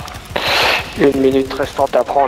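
A man speaks with animation into a microphone, close up.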